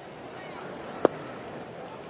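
A ball smacks into a catcher's mitt.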